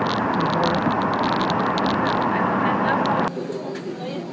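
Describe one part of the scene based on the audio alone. Car tyres roar steadily on the road inside a tunnel.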